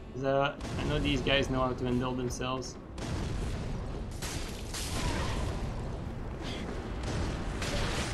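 A fireball roars and bursts.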